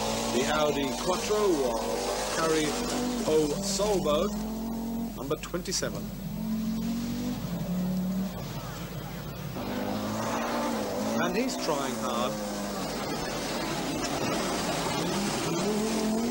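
A rally car engine roars and revs up and down as the car speeds past.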